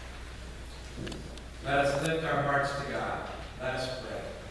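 A man speaks calmly into a microphone, his voice echoing in a large hall.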